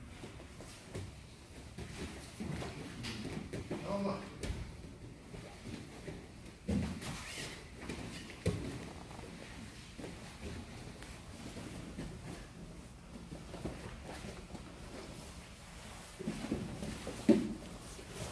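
Feet scuff and slide on a padded mat.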